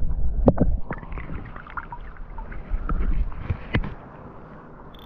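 Water sloshes and splashes close by.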